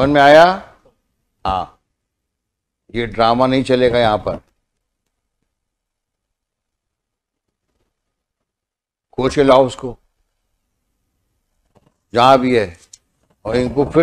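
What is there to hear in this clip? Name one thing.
A middle-aged man speaks firmly into a microphone, in short bursts with pauses.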